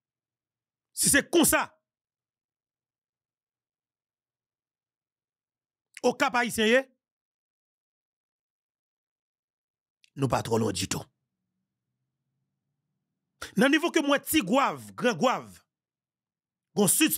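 A man speaks calmly and clearly into a close microphone, in short bursts with long pauses.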